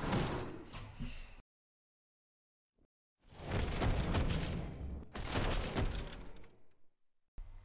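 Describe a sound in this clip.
Swooshing fighting game attack sounds burst out in quick bursts.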